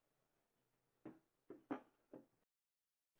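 Wooden pieces knock together.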